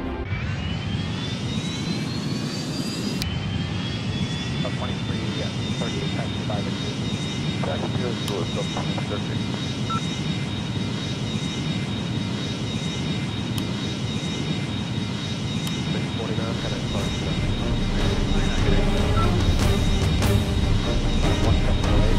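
Jet engines roar steadily with a high whine that rises, growing louder toward the end.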